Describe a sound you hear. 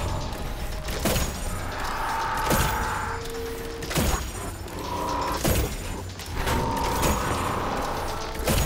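A heavy gun fires loud single shots, each with a ringing boom.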